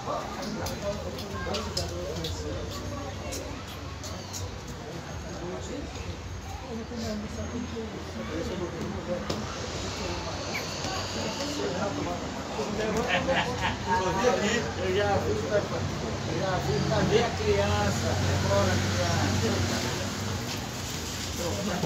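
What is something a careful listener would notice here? Plastic checker pieces click on a board.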